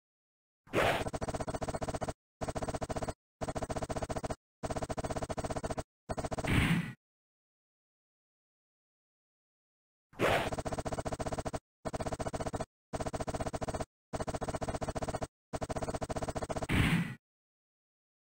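Rapid electronic beeps tick as text is typed out letter by letter.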